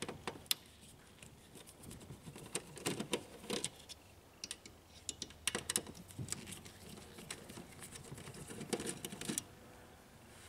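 A metal tool clicks and taps against plastic parts.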